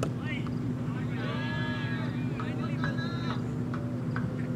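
Young men shout and cheer after a shot.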